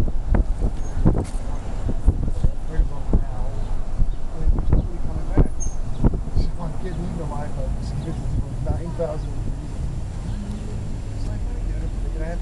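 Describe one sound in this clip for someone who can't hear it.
People chatter in a crowd nearby.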